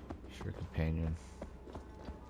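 A bear gives a deep, short growl.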